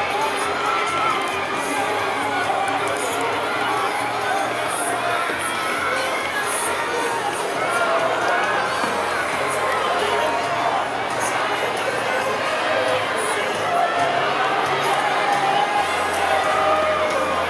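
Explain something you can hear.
A crowd roars and cheers continuously.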